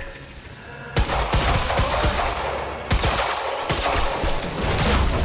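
Gunshots fire in rapid bursts with a sharp echo.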